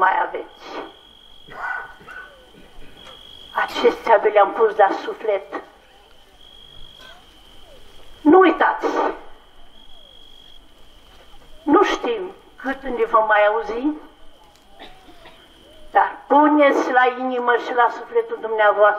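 An elderly man chants through a microphone in short bursts.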